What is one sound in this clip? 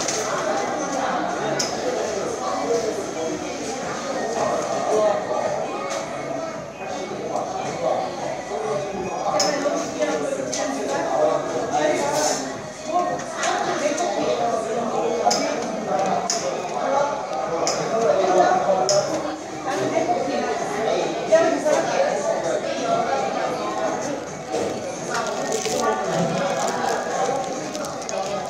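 A man chews food close by.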